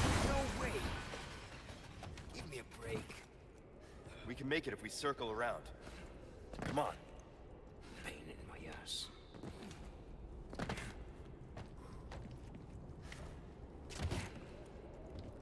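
Footsteps thud on wooden stairs and rocky ground.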